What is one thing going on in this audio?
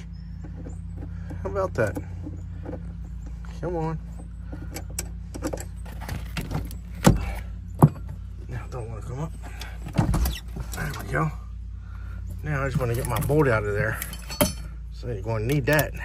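A metal tool clinks against a metal bracket.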